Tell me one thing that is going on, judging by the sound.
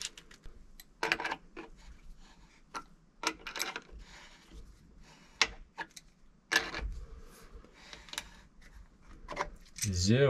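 A wrench clicks and scrapes against a metal pipe fitting.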